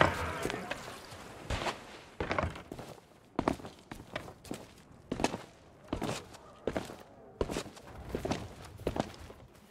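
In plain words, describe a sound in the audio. Footsteps tap steadily on stone paving.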